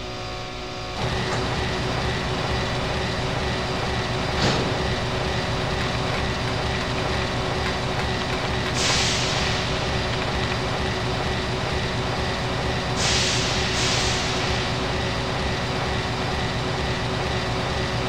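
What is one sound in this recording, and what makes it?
A large machine hums steadily.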